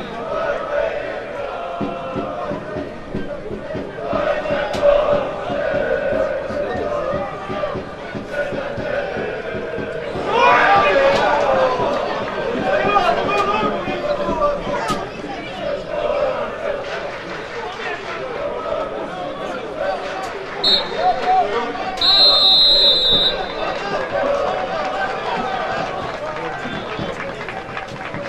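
A crowd of spectators shouts and cheers in an open-air stadium.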